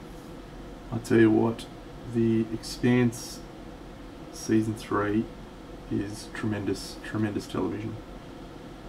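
A man speaks calmly into a close microphone, in short bursts.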